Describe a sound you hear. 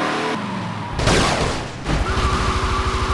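A car crashes and scrapes as it flips over.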